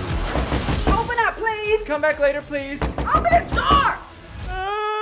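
A woman sings loudly with feeling.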